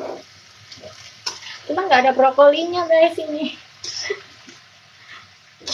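A spatula scrapes and clatters against a wok.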